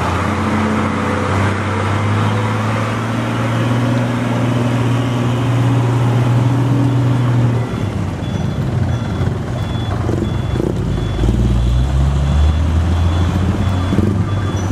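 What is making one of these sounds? A loaded diesel truck's engine drones as it crawls over a rough muddy road.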